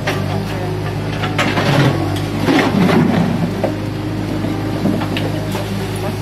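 A diesel engine of a small excavator rumbles steadily close by.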